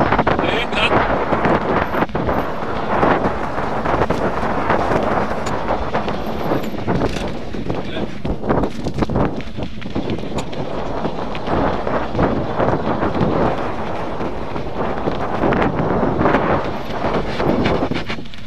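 Bicycle tyres crunch and rattle over a rough dirt trail.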